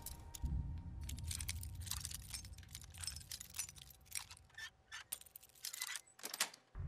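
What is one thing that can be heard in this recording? A metal pick scrapes and clicks inside a lock.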